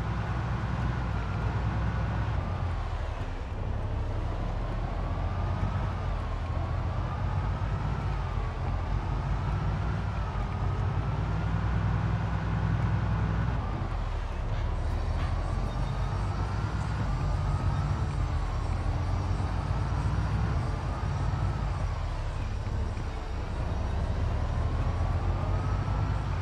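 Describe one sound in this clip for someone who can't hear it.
A van engine drones steadily, rising and falling in pitch as it shifts gears.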